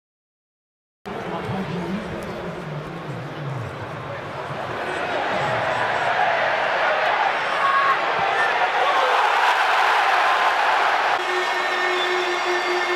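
A large stadium crowd roars and swells into loud cheering.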